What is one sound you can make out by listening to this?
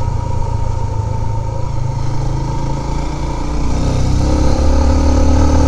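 A motorcycle engine rumbles steadily close by, rising in pitch toward the end.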